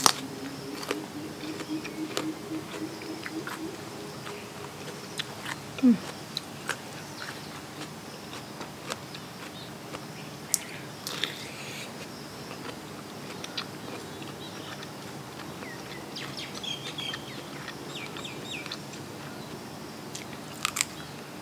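Shrimp shells crackle and snap as they are peeled by hand.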